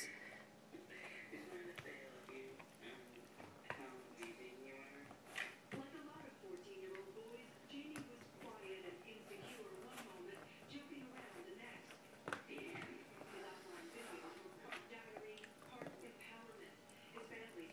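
A dog gnaws and chews on a bone.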